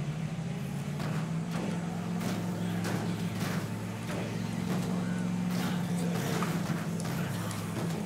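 Heavy thuds sound as a van rams into bodies, again and again.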